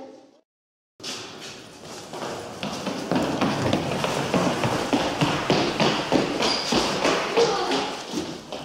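Children's footsteps patter quickly across a hard floor.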